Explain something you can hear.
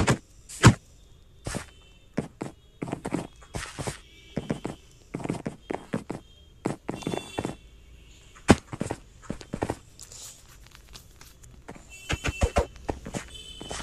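Short clicks and thuds of blocks and footsteps sound from a video game.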